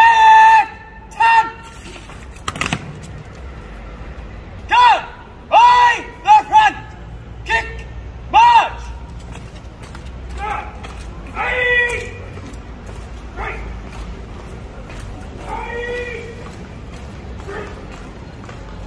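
A man shouts loud, drawn-out commands outdoors, his voice ringing off nearby walls.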